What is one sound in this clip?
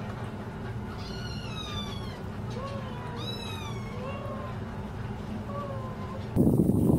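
Small kittens mew in high, thin cries.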